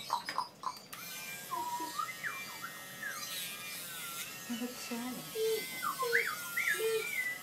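A small electric grinder whirs steadily.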